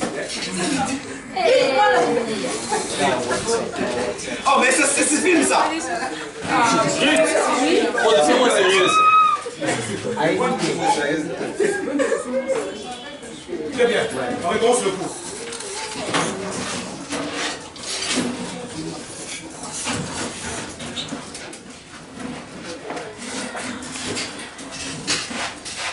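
Young voices chatter throughout the room.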